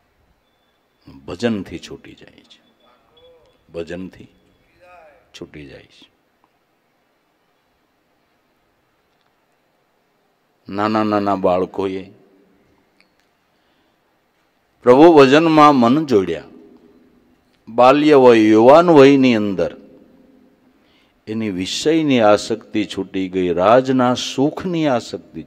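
An elderly man sings into a microphone in phrases with pauses between them.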